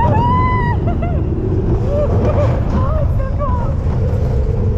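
A woman screams with delight close by.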